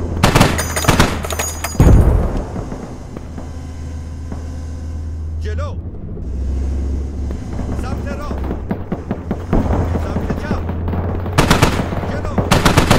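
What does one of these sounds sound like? Rounds strike the ground in rapid bursts of sharp blasts.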